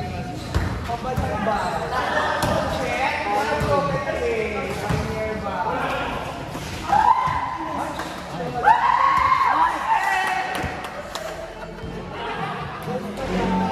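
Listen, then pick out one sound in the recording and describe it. Young players shout and call out to each other across an echoing indoor court.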